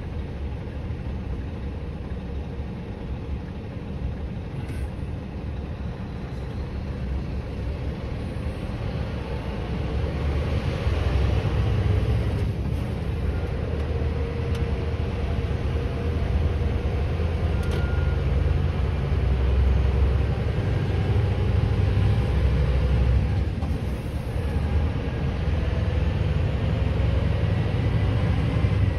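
A vehicle's engine rumbles low and steady.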